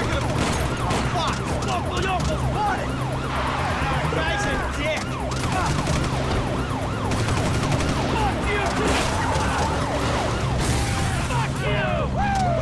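A man speaks tensely from inside a car.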